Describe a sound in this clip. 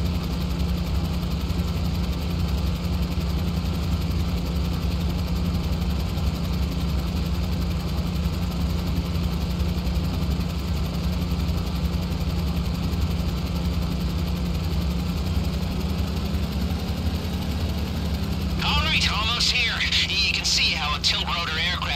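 A tiltrotor aircraft's rotors drone steadily in flight.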